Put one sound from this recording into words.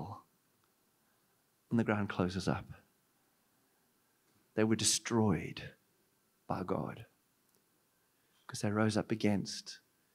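A man speaks with animation through a microphone and loudspeakers, in bursts with pauses.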